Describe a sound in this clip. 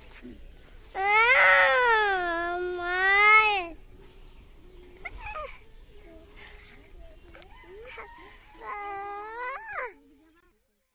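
A small child cries out loudly in long, wavering wails close by.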